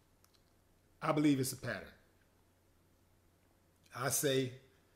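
A man speaks close to a microphone in short, emphatic bursts.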